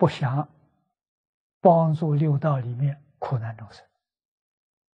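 An elderly man speaks calmly through a clip-on microphone, pausing between phrases.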